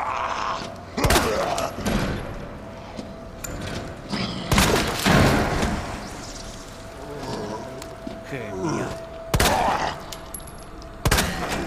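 A pistol fires loud shots that echo.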